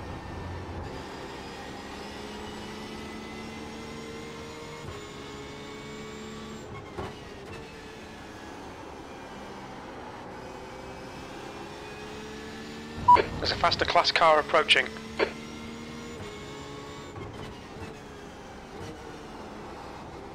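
A racing car engine drones steadily, its pitch rising and dropping as it shifts gears.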